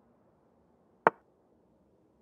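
A single sharp click of a chess piece being placed.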